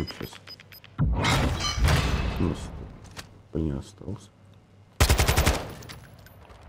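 Rifle shots crack loudly, with sharp echoes.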